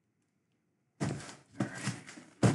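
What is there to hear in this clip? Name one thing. A cardboard box scrapes and thumps as it is handled.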